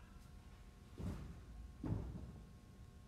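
Feet land with soft thuds on a gym mat.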